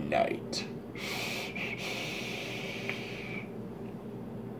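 A young man draws a long breath in through a vaporizer with a hiss.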